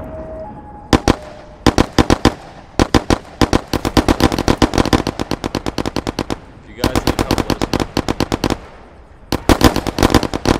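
A gun fires in rapid bursts, loud and close.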